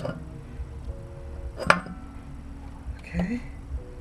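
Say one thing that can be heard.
A metal axle clunks as it is pulled free.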